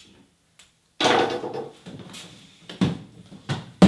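A chair scrapes across the floor.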